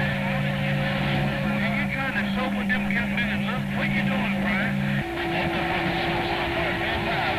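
A radio receiver hisses and crackles with static.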